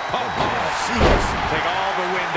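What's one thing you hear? A body slams hard onto a wrestling mat with a heavy thud.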